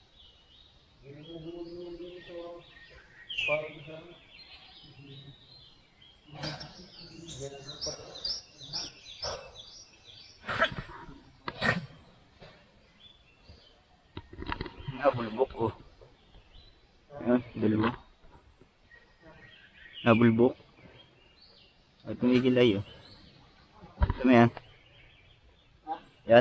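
A man calls out loudly from the water nearby, outdoors.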